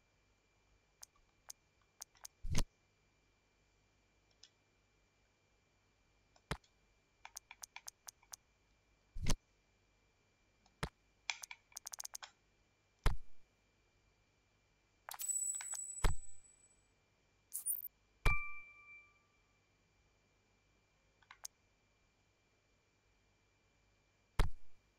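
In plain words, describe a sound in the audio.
Short electronic menu clicks and beeps sound now and then.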